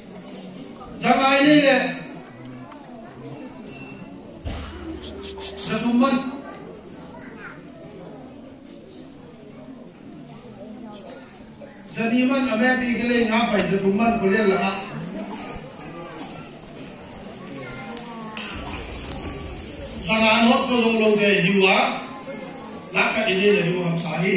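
A man speaks with emphasis into a microphone, heard through a loudspeaker in an echoing hall.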